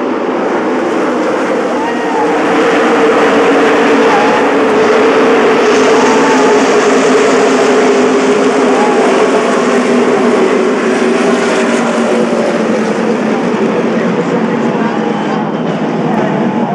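A large crowd cheers in an open-air stadium.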